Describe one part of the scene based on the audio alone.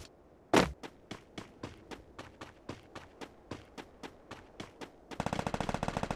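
Quick footsteps run over ground.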